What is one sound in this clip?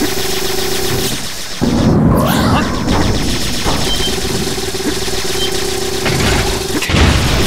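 Rapid gunfire blasts repeatedly.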